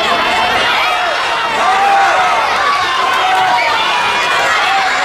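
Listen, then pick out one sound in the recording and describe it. A crowd of many voices chatters and calls out in a large echoing hall.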